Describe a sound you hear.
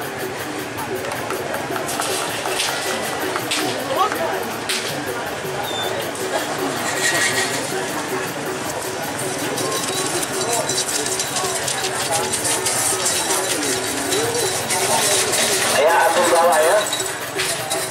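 Hooves pound the dirt track as bulls gallop.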